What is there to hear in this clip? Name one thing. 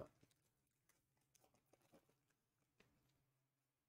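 A plastic wrapper crinkles softly as it is torn open.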